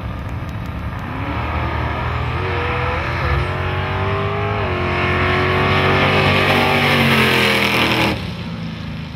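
Powerful race car engines roar and rise in pitch as the cars accelerate hard.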